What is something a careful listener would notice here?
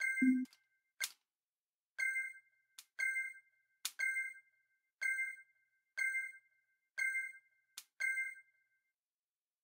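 Short electronic beeps count down, about once a second.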